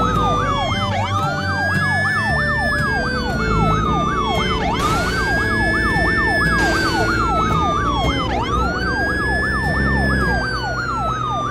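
A pickup truck engine growls as it climbs over rough ground.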